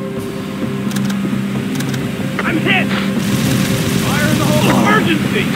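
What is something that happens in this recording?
A rifle clicks as its fire mode is switched.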